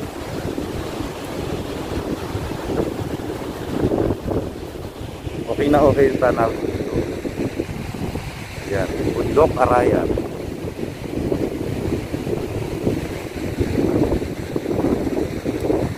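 A man speaks calmly close to the microphone.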